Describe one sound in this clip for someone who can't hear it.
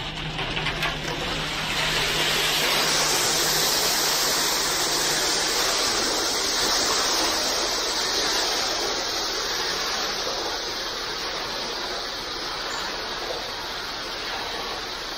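Wet concrete slides and rushes down a metal chute.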